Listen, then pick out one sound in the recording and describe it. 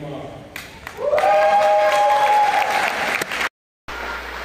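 People in an audience cheer and whoop loudly.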